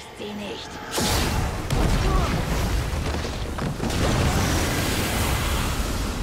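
A loud rushing roar fills the air.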